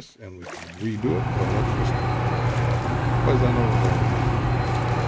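A small motor hums steadily underwater.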